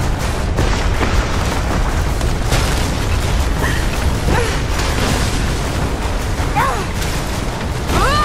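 Strong wind howls and roars steadily outdoors.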